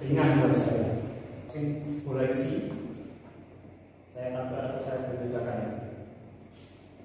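A young man speaks calmly in an echoing room.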